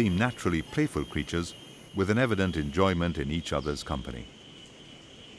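Monkeys call loudly in short bursts from the trees.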